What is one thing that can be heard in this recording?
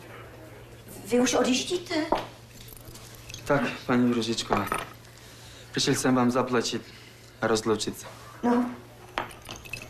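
A young man answers calmly nearby.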